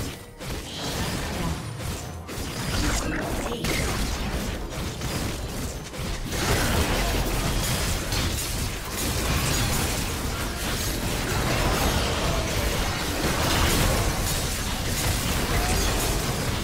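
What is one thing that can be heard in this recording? Magic spells crackle and blast in a busy fight.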